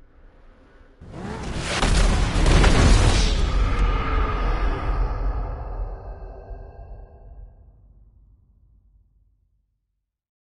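A sudden explosion bursts and its rumble slowly fades.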